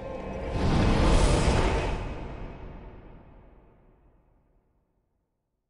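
A deep rushing whoosh swells and slowly fades away.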